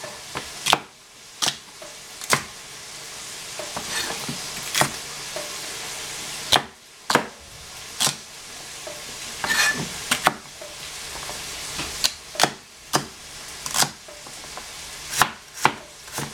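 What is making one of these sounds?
A cleaver chops through celery and knocks sharply on a cutting board.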